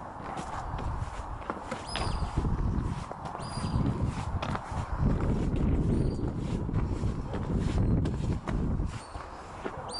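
Wind blusters against the microphone outdoors.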